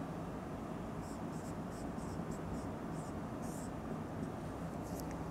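A marker squeaks in short bursts on a whiteboard.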